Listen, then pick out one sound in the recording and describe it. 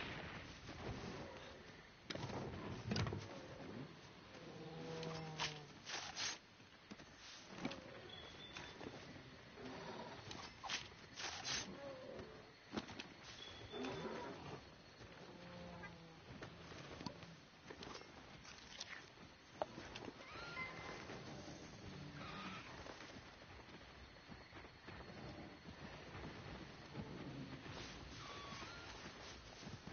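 Heavy blows thud and crash during a fierce fight with a large beast.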